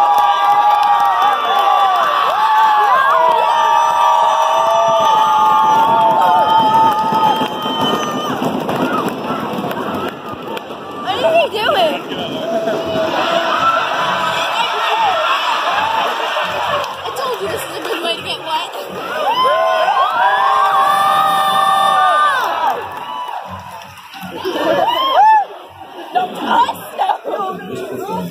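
A group of young people sing loudly close by.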